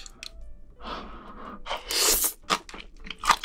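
A young man slurps noodles loudly.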